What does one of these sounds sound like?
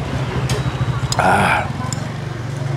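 A man slurps soup from a spoon.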